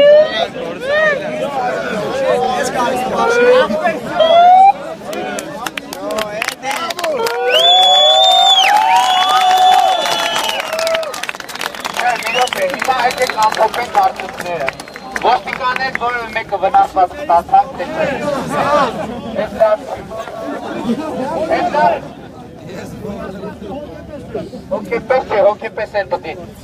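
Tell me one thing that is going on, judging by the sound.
A large crowd of young men chants and shouts loudly outdoors.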